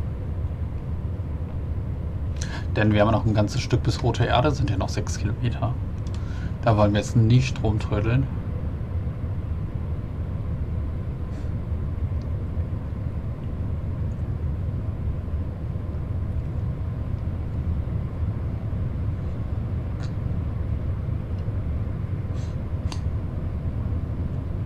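An electric multiple unit rumbles along the rails.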